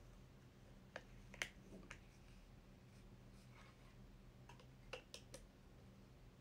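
A metal stand clicks and rattles as it is handled.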